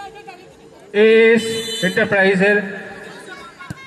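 A crowd of young men cheers and shouts loudly.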